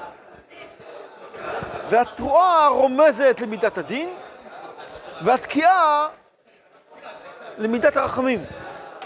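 An elderly man speaks with animation close to a microphone.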